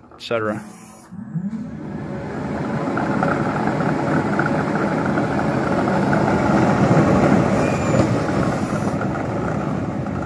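A machine's motor whirs up and runs with a steady roar.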